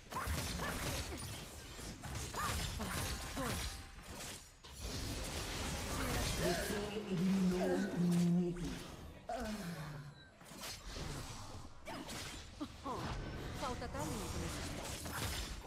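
Video game spell effects whoosh and clash in quick bursts.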